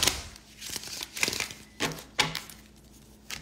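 Plastic packaging crinkles and rustles as it is opened.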